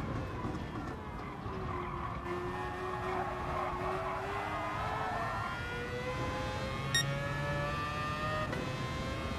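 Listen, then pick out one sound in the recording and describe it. A racing car engine drops in pitch as it slows, then revs higher as it speeds up.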